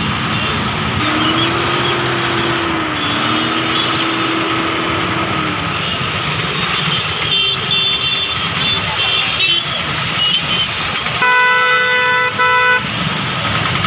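Vehicle horns honk repeatedly.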